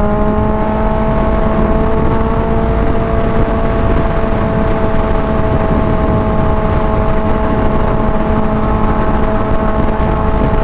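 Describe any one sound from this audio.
A motorcycle engine hums steadily at high speed.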